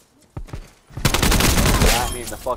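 An automatic rifle fires a burst.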